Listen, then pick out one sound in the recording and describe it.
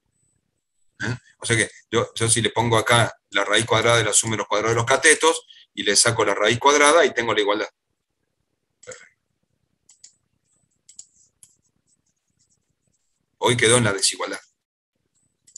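A middle-aged man speaks calmly through an online call microphone.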